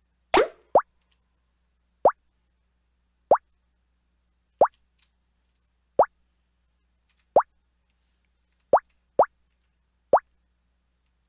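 A game ball bounces with short, bright boinging blips.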